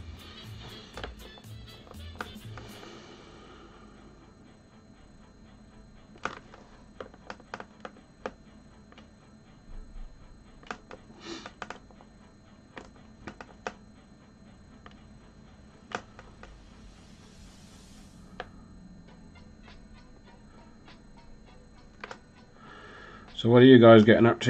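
A small plastic figure taps and clicks softly as it is handled.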